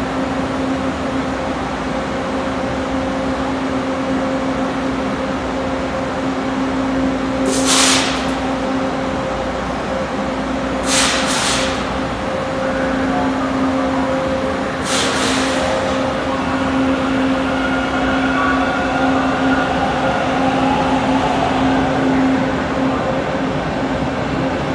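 A subway train idles at a platform with a steady low hum.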